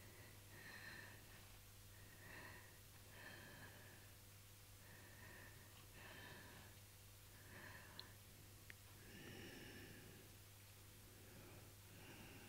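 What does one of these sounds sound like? An elderly woman speaks calmly into a microphone, close by.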